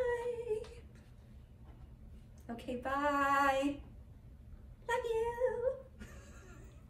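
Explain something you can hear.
A young woman speaks brightly and cheerfully, close to the microphone.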